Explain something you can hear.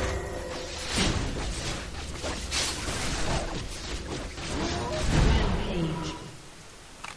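Magic blasts and blows crackle and thud in a fast fight.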